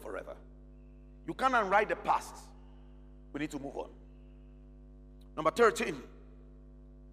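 A man speaks with animation through a microphone, in short bursts.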